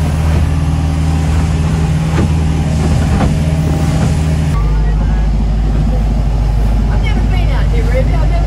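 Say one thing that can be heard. Water rushes against a boat's hull.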